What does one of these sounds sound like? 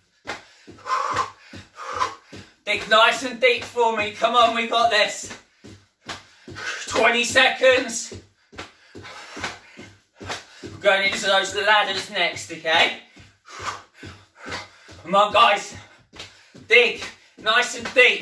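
Bare feet thud on a wooden floor in a steady rhythm.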